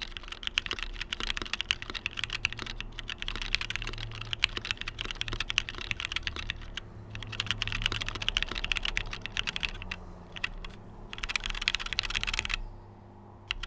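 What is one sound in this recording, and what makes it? Fingers type fast on a clacky keyboard, keys clattering rapidly.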